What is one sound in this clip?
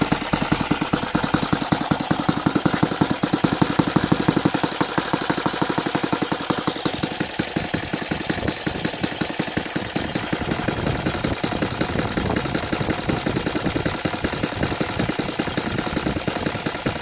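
A small model engine runs with a loud, rapid buzzing rattle.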